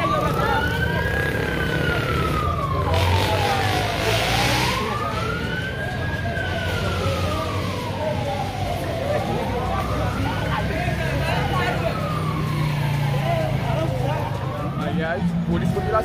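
A crowd of men and women talk and shout excitedly nearby.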